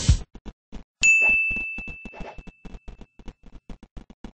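A game chime rings once and slowly fades.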